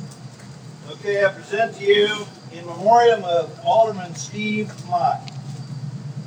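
An elderly man speaks outdoors, loud and close.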